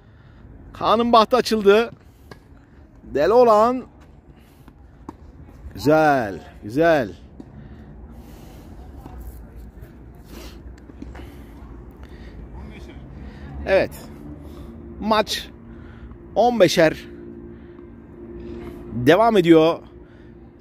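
A tennis ball is struck with a racket, back and forth.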